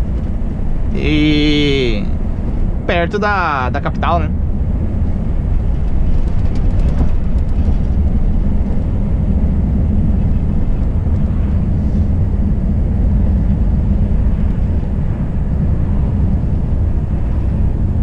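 A truck engine rumbles low and steady while driving.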